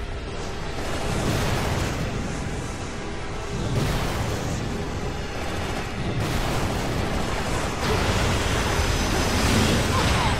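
Flames roar and blast loudly.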